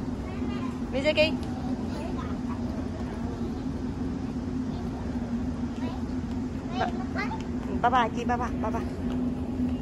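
A young girl calls out and chatters nearby.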